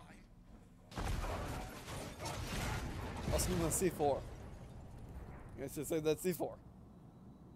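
A loud crash and explosion booms.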